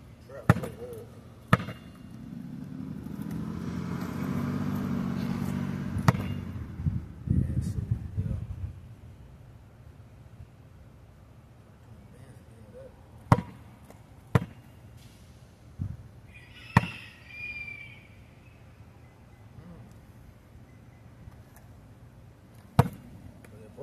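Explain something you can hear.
A basketball bounces sharply on pavement.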